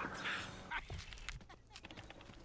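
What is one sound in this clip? A punch lands with a dull thud.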